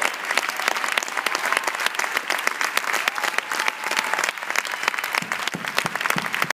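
An audience claps in a large echoing hall.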